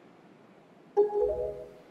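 A short, bright game chime sounds.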